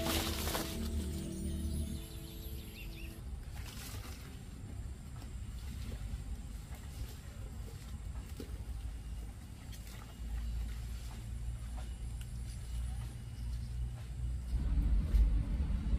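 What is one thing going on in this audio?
Leafy stems and roots rustle and scrape as they are dropped into a wicker basket.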